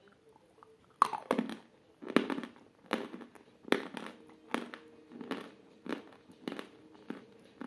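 A woman crunches and chews loudly close to a microphone.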